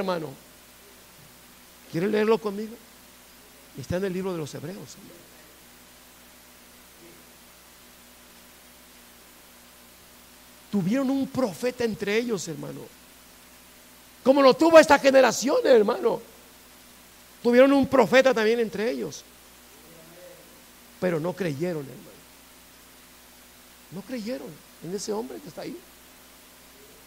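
A middle-aged man speaks with animation in bursts, with pauses, in a slightly echoing room.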